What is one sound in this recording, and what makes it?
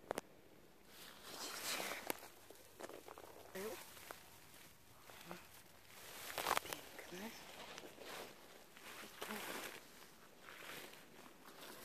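Dry heather rustles and brushes underfoot.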